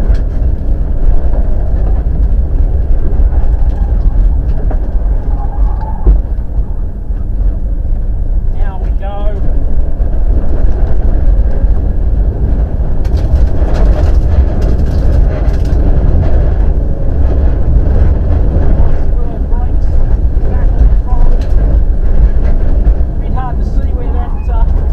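Tyres crunch and skid over loose gravel.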